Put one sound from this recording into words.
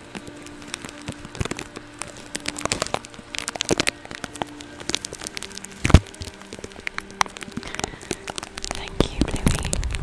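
A woman makes soft mouth clicks close to a microphone.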